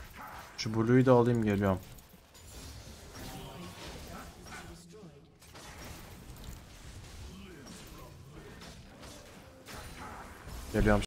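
A young man talks with animation into a close microphone, at times raising his voice.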